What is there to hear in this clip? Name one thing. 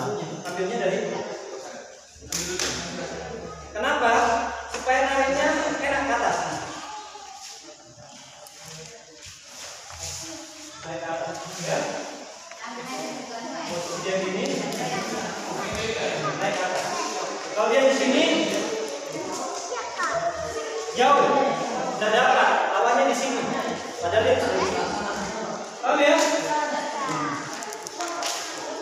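Children chatter nearby.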